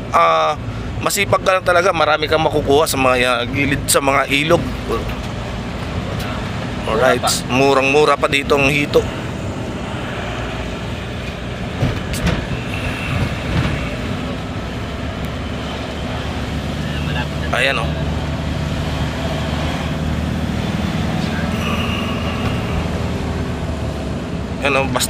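A car engine hums steadily inside a moving vehicle.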